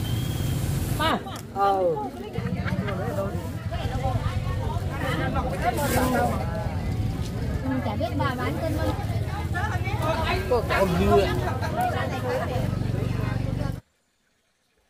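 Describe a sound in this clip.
A crowd of men and women chatter and call out nearby outdoors.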